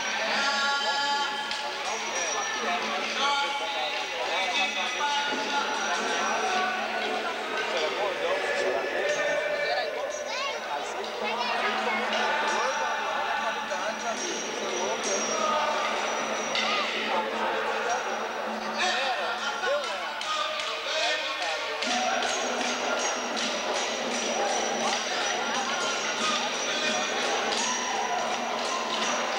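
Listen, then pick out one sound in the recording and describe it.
Dancers' feet stamp on the ground in rhythm.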